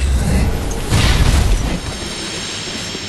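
A magic blast bursts with a bright whoosh.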